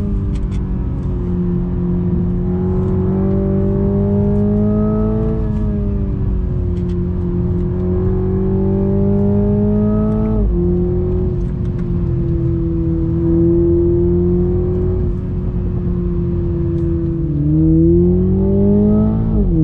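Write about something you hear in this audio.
A car engine drones steadily from inside the cabin, its pitch rising and falling as the car speeds up and shifts gears.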